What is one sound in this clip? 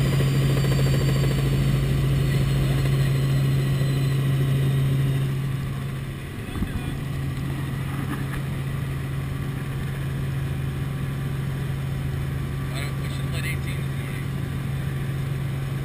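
Wind rushes past an open helicopter door.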